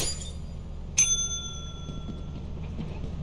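A small service bell dings once and rings out.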